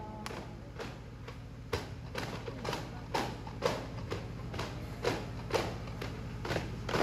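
Hand drums beat in a steady, quick rhythm.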